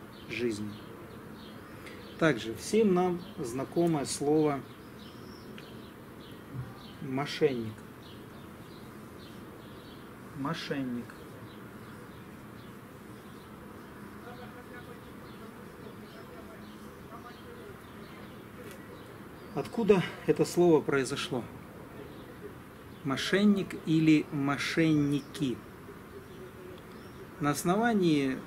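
A man speaks calmly and close by, with long pauses.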